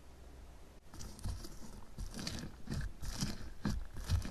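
Soft foam bits crunch and squish lightly under fingers.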